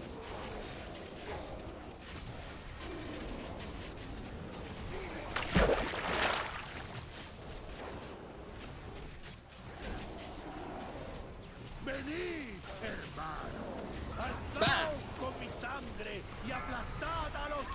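Spell effects whoosh and crackle during a game battle.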